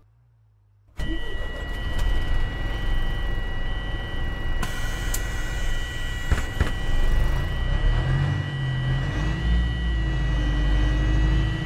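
A bus engine idles with a low, steady rumble.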